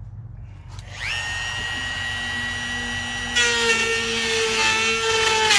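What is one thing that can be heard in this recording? A power router starts up and whines steadily.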